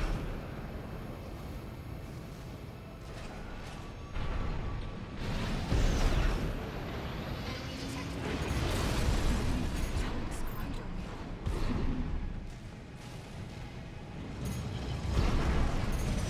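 An energy blade hums and slashes.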